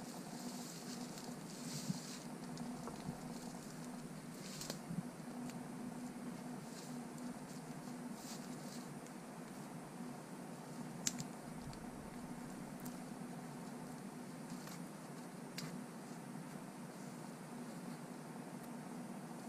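Dry branches snap and crack underfoot.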